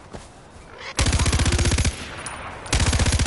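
A rifle fires a rapid burst of loud shots close by.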